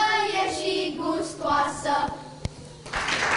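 A group of young children sings together loudly.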